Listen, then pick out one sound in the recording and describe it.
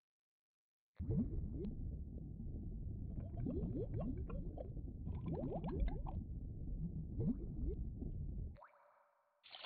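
Bubbles gurgle and burble underwater.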